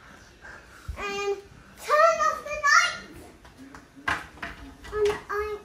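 A young girl talks excitedly close by.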